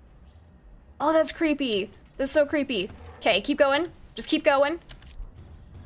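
A young woman speaks animatedly into a close microphone.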